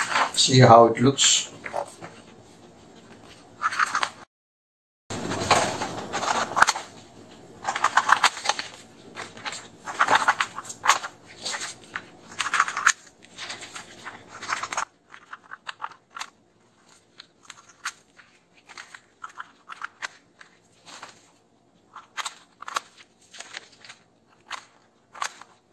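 Sheets of paper rustle as they are handled.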